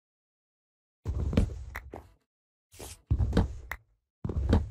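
Wooden blocks thud and crack as they are chopped and broken in quick bursts.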